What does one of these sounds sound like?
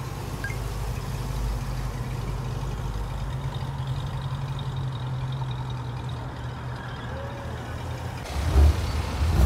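A classic car engine idles with a deep rumble.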